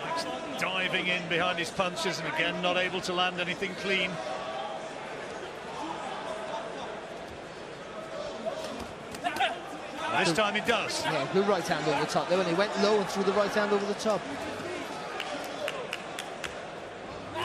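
A large crowd murmurs and cheers in a big hall.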